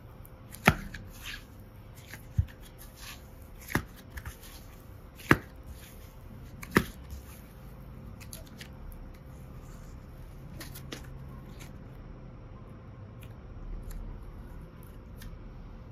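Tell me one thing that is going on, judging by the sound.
Soft clay squishes and squelches as fingers knead and stretch it.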